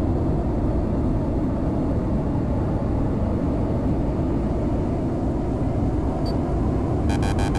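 A jet engine roars steadily in the cockpit.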